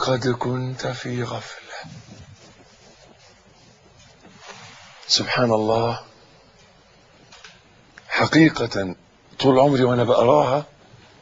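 An elderly man speaks slowly and earnestly into a microphone, with pauses.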